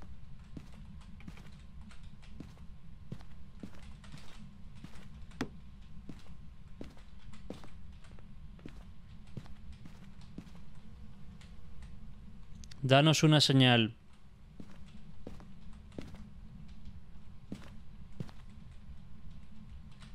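Footsteps thud steadily on a floor.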